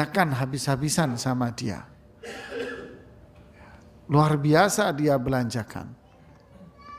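A man speaks calmly into a microphone, in a room with some echo.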